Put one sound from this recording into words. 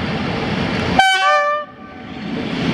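A train horn blares loudly and briefly, dropping in pitch.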